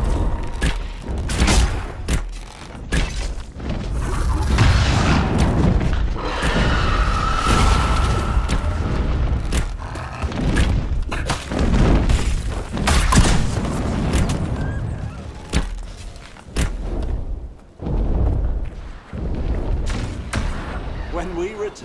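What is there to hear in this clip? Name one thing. Sword strikes slash and thud in a battle.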